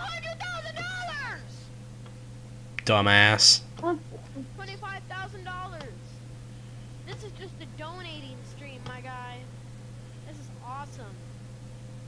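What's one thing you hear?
Teenage boys talk and joke over an online call.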